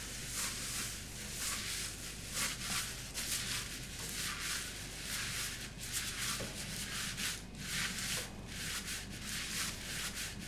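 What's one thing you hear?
A sponge scrubs back and forth across a hard floor in quick, steady strokes.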